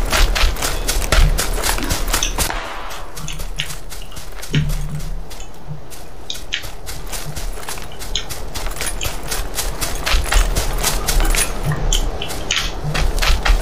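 Footsteps rustle quickly through dry grass.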